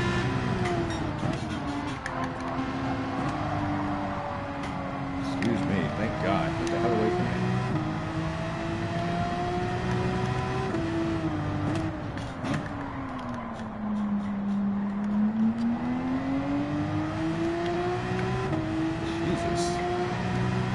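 A racing car engine roars steadily, rising and falling in pitch as it speeds up and slows down.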